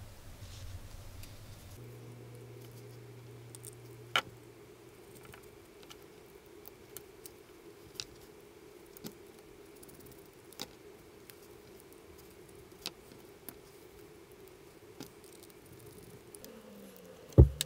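Small metal parts click and tap against a hard surface.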